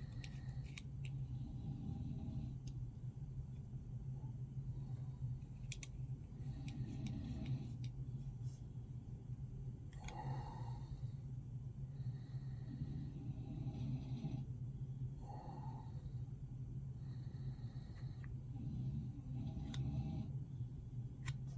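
A metal caliper clicks as its jaw slides.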